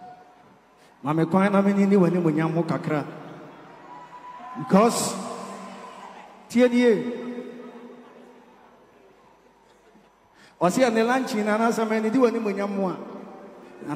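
A man sings loudly through a microphone and loudspeakers in a large echoing hall, in short bursts.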